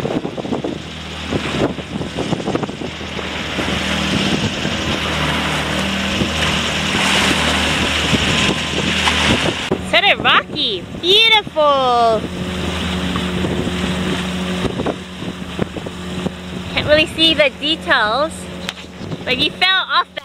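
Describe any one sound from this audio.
Waves splash and slap against a moving boat.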